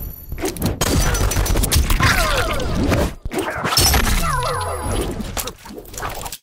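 Blows and slashes land with heavy thuds in a fight.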